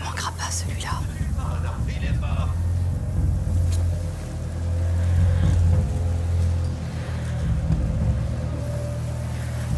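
Tall grass rustles as someone creeps slowly through it.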